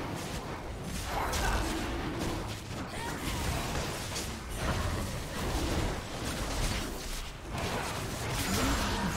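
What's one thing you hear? Game spell effects whoosh and crackle as characters fight.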